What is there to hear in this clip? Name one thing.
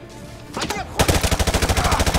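A rifle fires a rapid burst close by.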